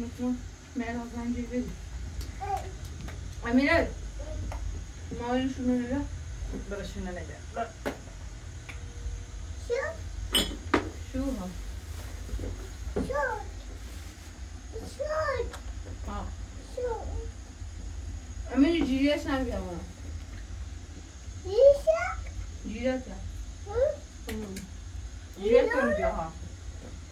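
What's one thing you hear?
A small child babbles and squeals.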